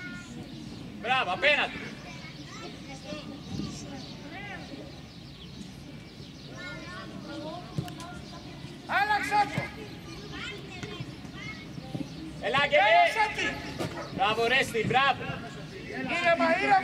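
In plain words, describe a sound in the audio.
Children shout excitedly across an outdoor field.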